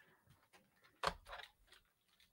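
A keyboard is set down on a hard surface with a soft knock.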